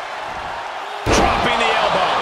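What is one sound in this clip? A body hits the ring mat with a heavy thud.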